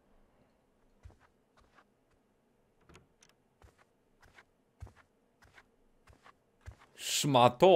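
Slow footsteps thud softly on a floor.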